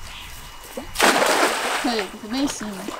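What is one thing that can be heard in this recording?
A cast net splashes into the water.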